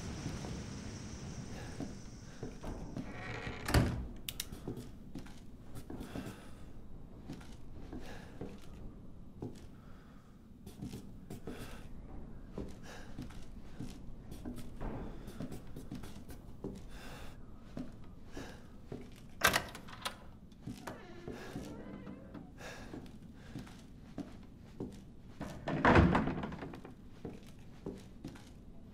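Slow footsteps thud on creaking wooden floorboards.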